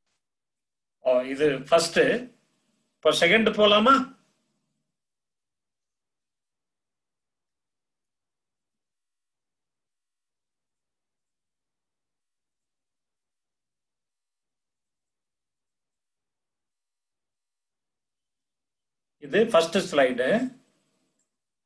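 A middle-aged man speaks calmly over an online call, in short bursts.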